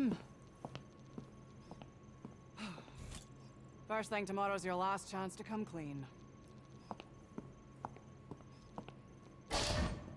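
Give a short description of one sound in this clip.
Footsteps walk away on a hard floor.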